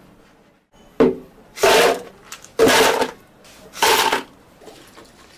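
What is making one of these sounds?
Ice cubes clatter into a plastic blender jug.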